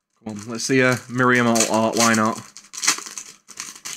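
Foil wrapping crinkles as a card pack is torn open.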